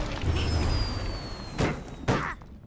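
A magical whooshing burst swirls loudly.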